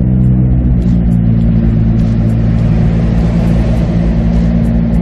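Wind rushes steadily past an open car.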